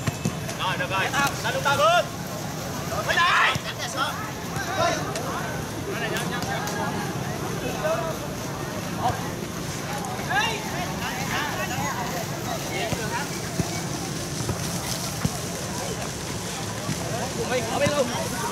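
Spectators shout and cheer outdoors at a distance.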